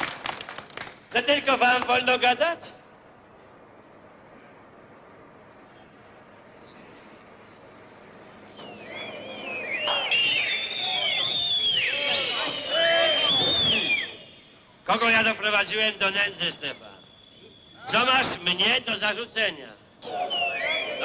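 An elderly man speaks loudly and forcefully to a crowd.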